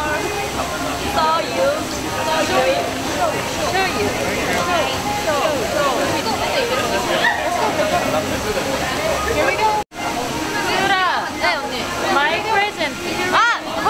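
Several young women talk with animation.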